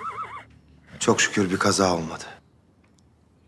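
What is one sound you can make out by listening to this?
A man speaks in a low, calm voice.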